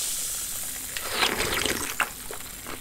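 A woman sips and gulps a drink close by.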